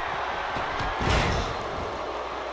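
A body slams down onto a wrestling ring mat with a heavy thud.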